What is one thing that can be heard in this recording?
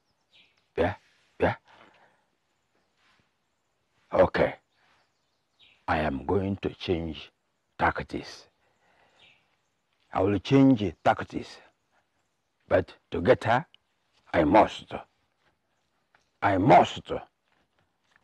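A man talks to himself in bursts, with animation, close by.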